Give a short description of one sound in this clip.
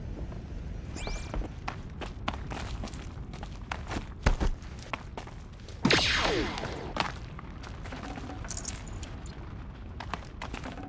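Footsteps crunch on rock and gravel.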